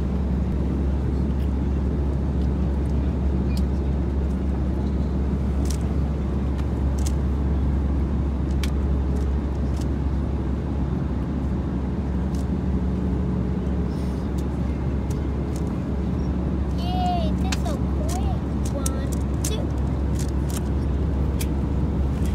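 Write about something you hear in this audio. Plastic cube pieces click and clack as a boy twists a puzzle cube.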